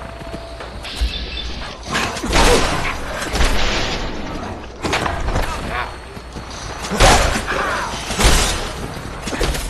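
Shots crack during a fight.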